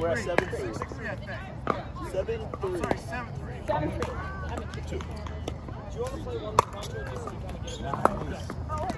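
Adult men and women talk and call out across outdoor courts.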